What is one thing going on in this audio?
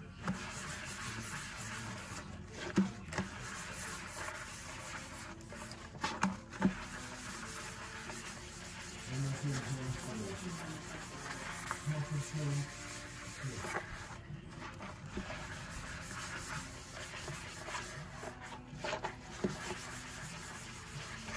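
A hand scrubs soapy foam around a metal sink with a wet squelching swish.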